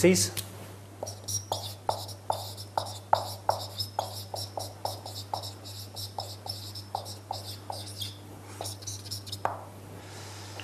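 A marker squeaks and taps across a whiteboard.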